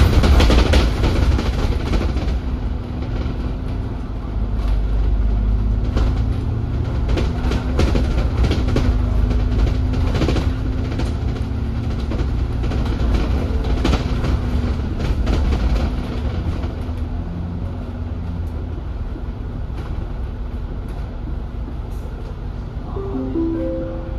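Raindrops tap against a window.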